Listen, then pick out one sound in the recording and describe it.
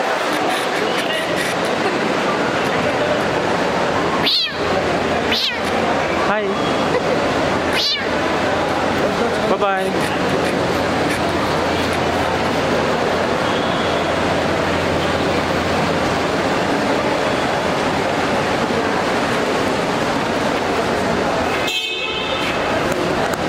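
A crowd chatters and calls out in a busy, echoing hall.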